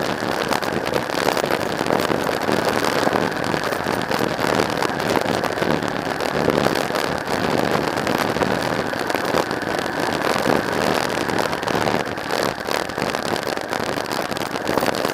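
A motorcycle engine runs steadily close by.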